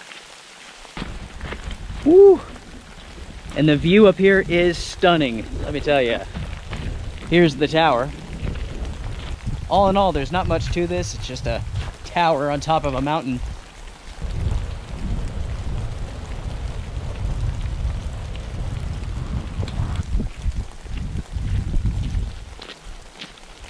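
Strong wind buffets the microphone outdoors.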